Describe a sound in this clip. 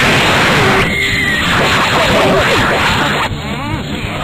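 An explosion bursts with a loud crackling blast.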